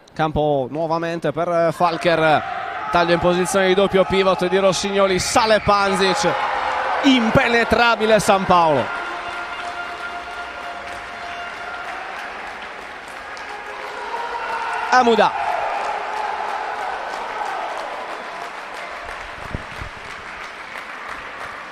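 A ball bounces on a hard court.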